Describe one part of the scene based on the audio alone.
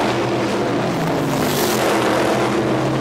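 A supermodified race car roars past at full throttle.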